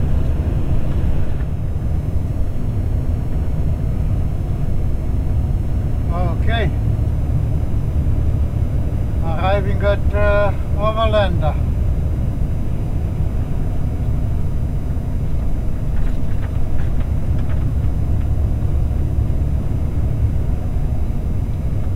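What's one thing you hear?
A vehicle engine hums steadily with a low road rumble.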